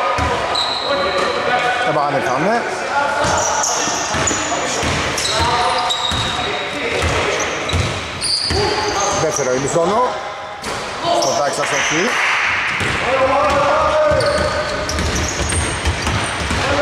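A basketball bounces with echoing thuds in a large hall.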